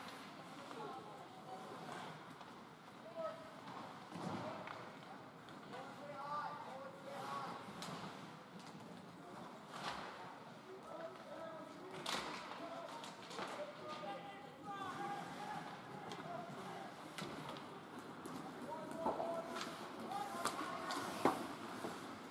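Ice hockey skates scrape and carve across ice in a large echoing rink.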